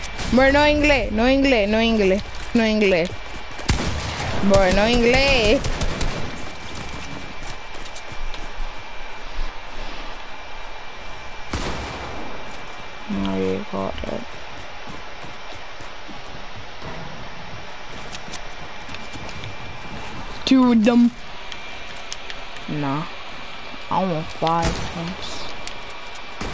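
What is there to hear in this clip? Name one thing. A gun fires a few sharp shots.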